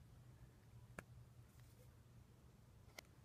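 A plastic cable connector clicks and rattles in hands.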